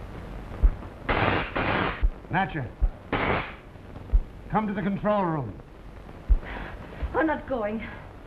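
A man speaks through a crackly loudspeaker.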